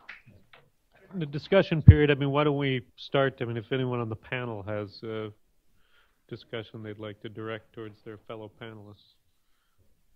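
A man speaks calmly into a microphone, heard through loudspeakers.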